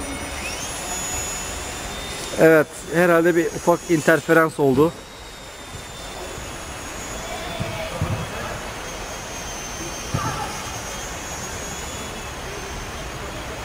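A small toy plane's propeller buzzes faintly overhead.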